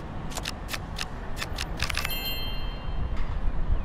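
Playing cards snap into place with quick, light clicks.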